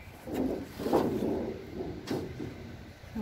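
A metal sheet scrapes and rattles on sandy ground.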